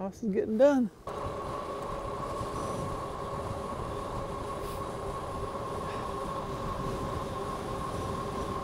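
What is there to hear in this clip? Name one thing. A car engine hums steadily while driving on a paved road.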